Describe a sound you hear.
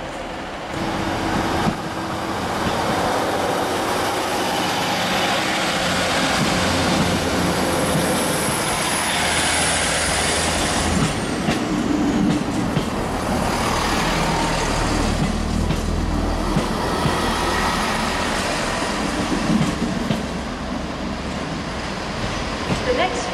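A train rumbles and clatters past close by.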